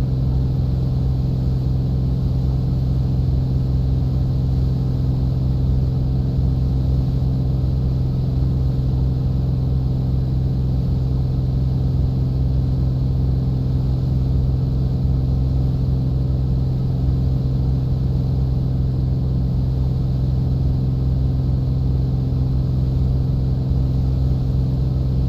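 A small propeller plane's engine drones steadily from inside the cockpit.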